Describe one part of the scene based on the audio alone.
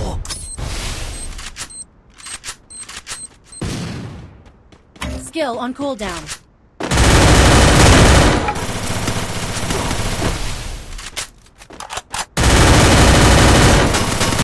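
Ice walls crunch into place in a video game.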